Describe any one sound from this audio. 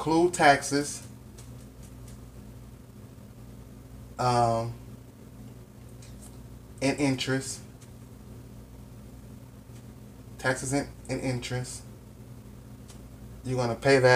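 A man speaks calmly close by, in short bursts with pauses.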